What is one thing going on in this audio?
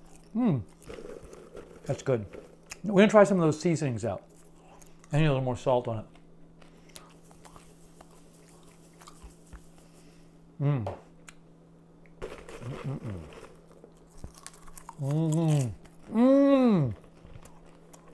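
A man munches popcorn.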